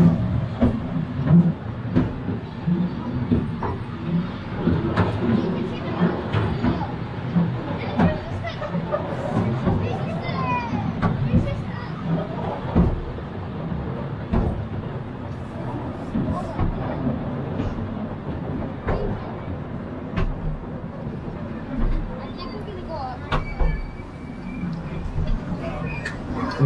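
A railway car rumbles and rattles steadily down a steep track.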